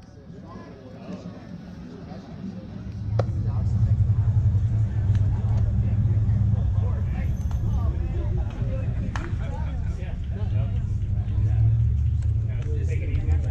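Men and boys talk faintly nearby.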